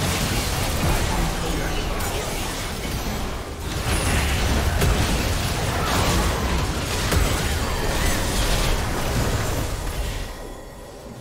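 Spell blasts and explosions crackle and boom in a fast game battle.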